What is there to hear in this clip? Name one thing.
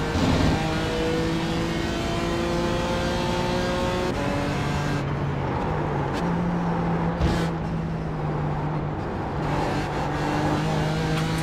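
A racing car engine roars at high revs and changes pitch as gears shift.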